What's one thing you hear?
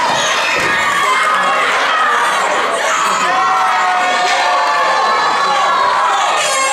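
A crowd cheers and shouts loudly in an echoing hall.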